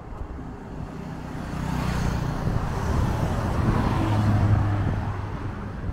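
A motorcycle approaches and rides past with a rising engine hum.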